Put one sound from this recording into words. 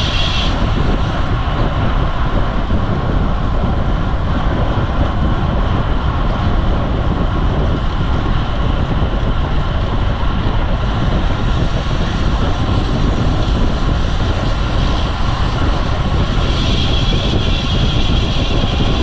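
Wind rushes loudly past the microphone of a moving bicycle.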